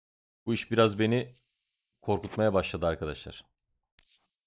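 A man speaks with animation, close to a headset microphone.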